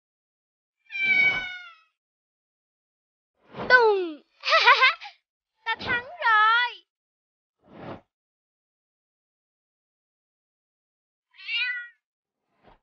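A kitten meows.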